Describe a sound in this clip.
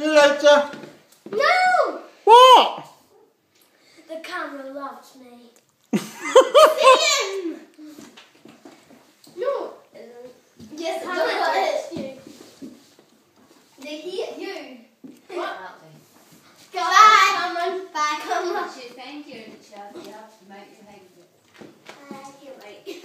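Children talk and laugh nearby.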